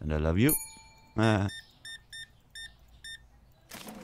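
A checkout scanner beeps as items are scanned.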